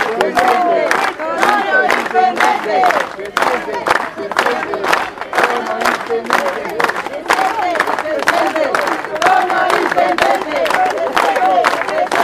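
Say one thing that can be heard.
A crowd of men claps hands in a steady rhythm.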